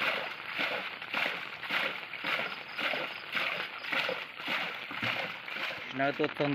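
Water splashes rhythmically as a man bails out a boat.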